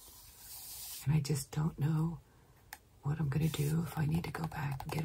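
An elderly woman speaks calmly close by.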